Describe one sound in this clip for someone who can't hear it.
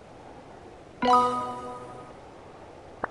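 A bright game chime rings out and fades.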